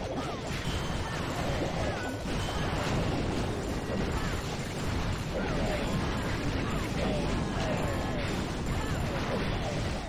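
Explosions and crashes of a game battle sound steadily.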